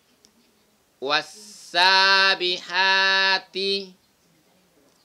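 A young man chants slowly and melodically close by.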